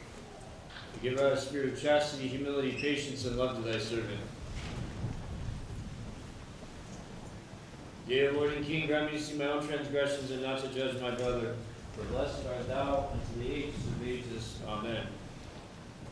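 A man chants in a low sustained voice in a large echoing hall.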